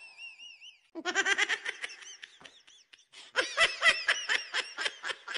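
A young boy laughs loudly in bursts close by.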